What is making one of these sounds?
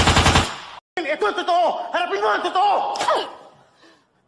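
A young man speaks in a playful, mocking voice.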